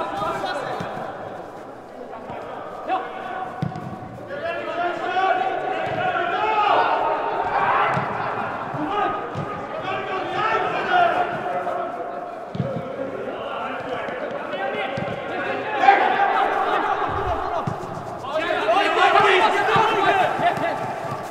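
Young players shout to each other across a large echoing indoor hall.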